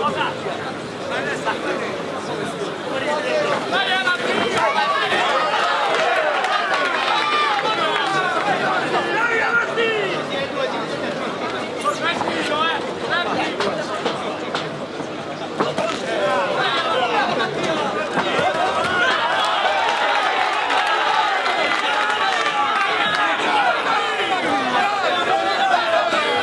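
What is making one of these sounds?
A large crowd murmurs and shouts in a big arena.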